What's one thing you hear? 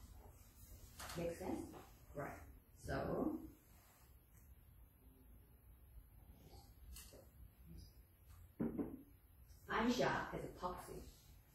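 A woman speaks in short bursts, with pauses.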